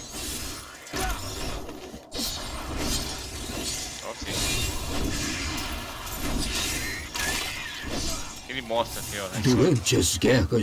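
Game combat effects whoosh and crash.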